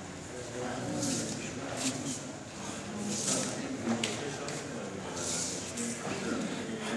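A stiff cotton uniform snaps sharply with quick punches.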